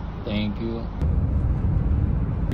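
A car rumbles steadily along a road.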